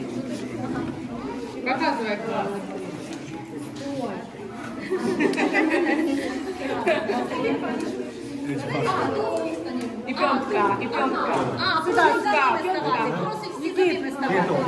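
A woman speaks close by.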